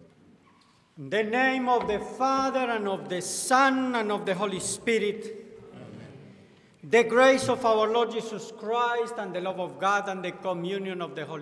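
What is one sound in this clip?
A man speaks steadily into a microphone in a large echoing hall.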